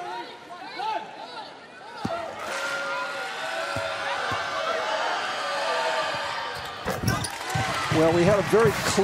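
A large indoor crowd murmurs and cheers in an echoing arena.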